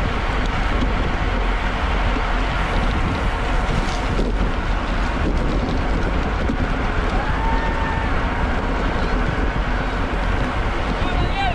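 Bicycle tyres hiss on a wet road.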